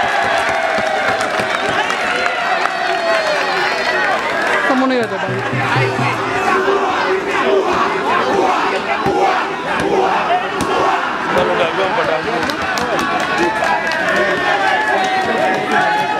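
A large crowd outdoors cheers and shouts loudly.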